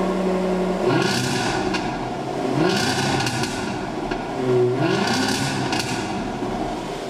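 A car engine revs loudly several times and settles back.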